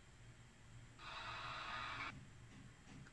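A phone plays a short burst of game sound through its small speaker.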